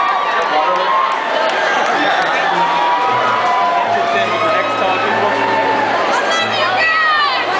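Electric guitars play loudly through speakers in a large echoing hall.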